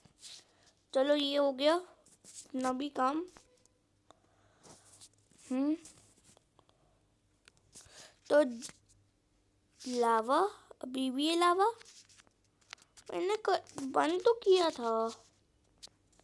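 A young child talks with animation close to a microphone.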